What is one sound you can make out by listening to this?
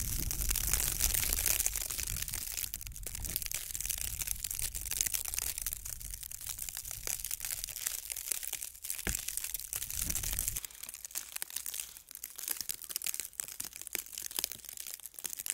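Sleet ticks and patters nearby.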